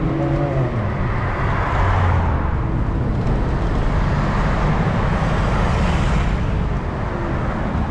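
A car drives past with a swelling rush.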